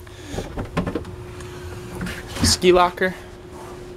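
A hatch lid clicks open.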